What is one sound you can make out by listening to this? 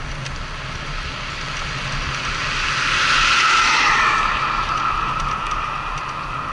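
A car approaches and rushes past with a swelling whoosh.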